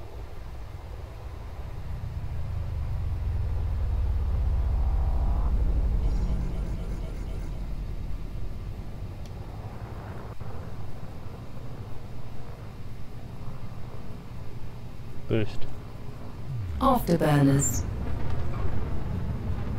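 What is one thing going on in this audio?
A deep spaceship engine rumble swells and then eases off.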